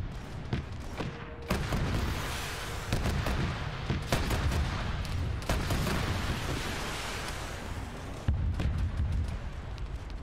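Guns fire in sharp bursts with loud booming blasts.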